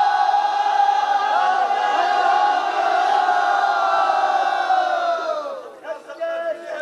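A crowd of men chants a mournful lament together.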